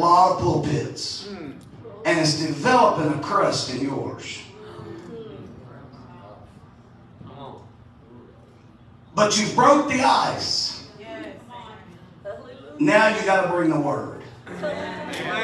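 A man preaches with animation into a microphone, his voice echoing in a large hall.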